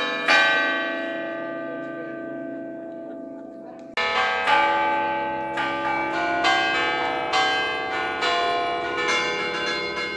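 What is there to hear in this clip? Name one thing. A church bell rings loudly, each stroke ringing out and slowly fading.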